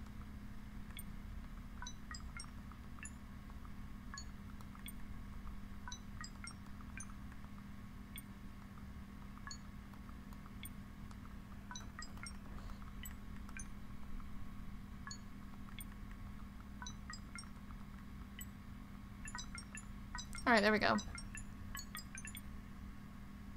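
Short electronic beeps sound as keypad buttons are pressed.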